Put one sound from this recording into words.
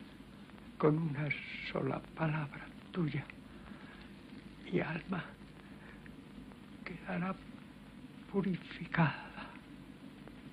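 A man speaks quietly and calmly nearby.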